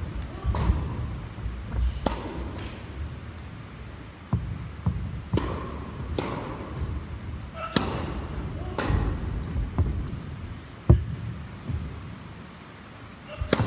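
Sneakers squeak and shuffle on a hard court.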